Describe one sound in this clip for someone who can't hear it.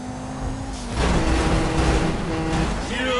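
A car crashes into a truck with a loud metallic bang.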